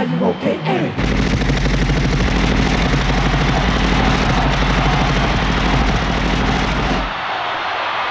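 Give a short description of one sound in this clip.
Stage fireworks burst and boom with a deep rumble.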